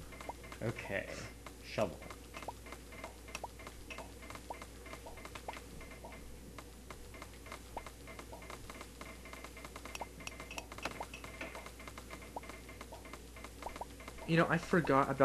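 Blocks of earth crunch with quick repeated taps as they are dug out.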